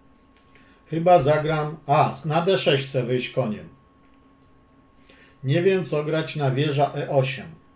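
An elderly man speaks calmly close to a microphone.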